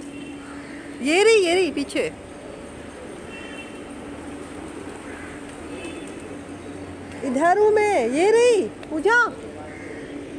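Pigeons coo nearby.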